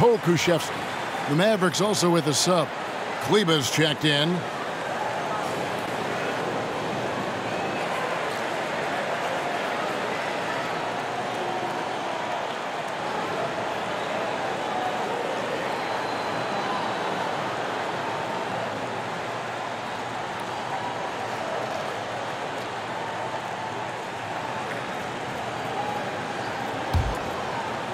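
A large crowd murmurs steadily in a big echoing arena.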